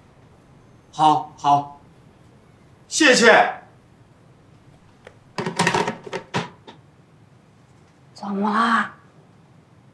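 A middle-aged man speaks anxiously into a phone.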